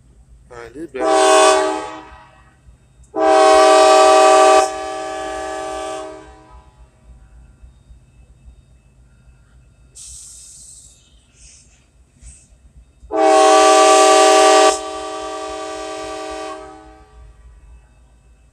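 A train horn blows several long, loud blasts nearby.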